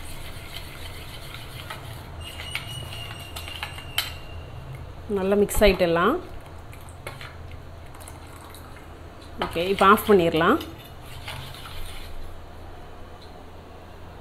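A metal spoon stirs liquid in a steel pot.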